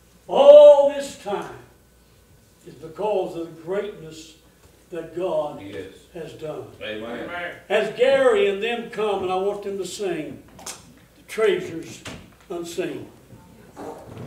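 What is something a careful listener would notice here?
An elderly man speaks with feeling in a room with a slight echo.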